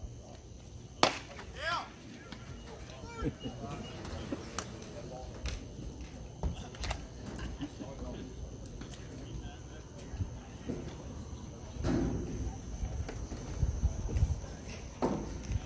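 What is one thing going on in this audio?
A baseball smacks into a catcher's mitt with a sharp pop.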